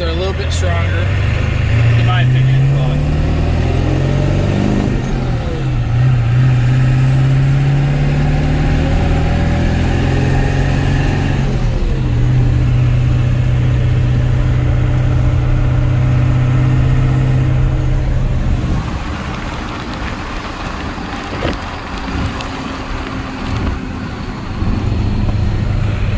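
A truck engine roars and revs up through the gears.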